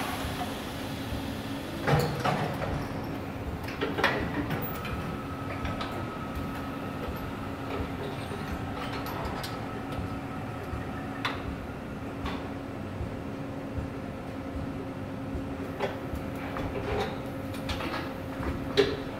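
Robotic machinery hums steadily.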